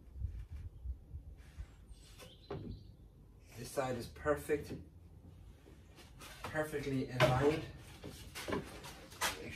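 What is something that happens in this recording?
Wooden boards knock and clatter together.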